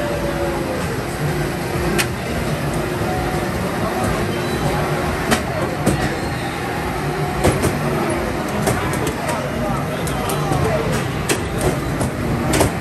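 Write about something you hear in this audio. Arcade racing games play loud engine roars and music through loudspeakers.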